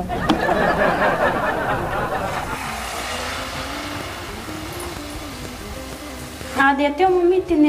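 Oil sizzles as food fries in a pan.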